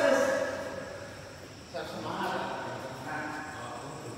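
A racket smacks a shuttlecock.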